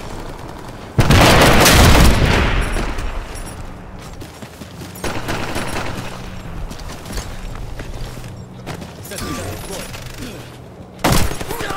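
Loud gunshots blast and echo between buildings.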